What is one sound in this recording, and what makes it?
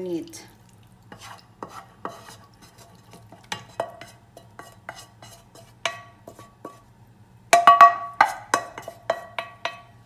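A wooden spatula scrapes food from a frying pan into a pot.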